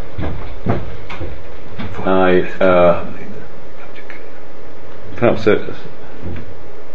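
A middle-aged man speaks slowly and deliberately through a microphone.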